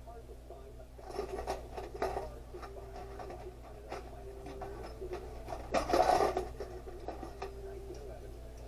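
Small metal parts clink as they are handled.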